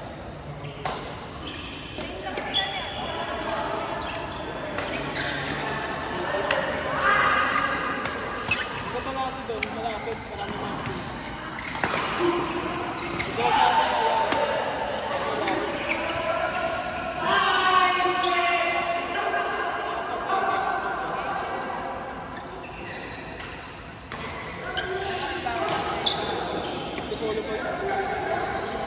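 Players' voices chatter and call out across a large echoing hall.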